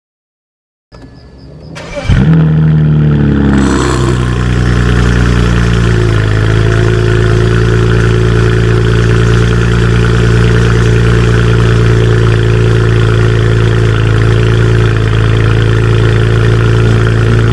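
A car engine starts with a roar and settles into a deep, loud rumbling idle.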